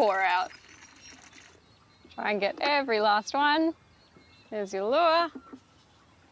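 Water pours and splashes from a bucket.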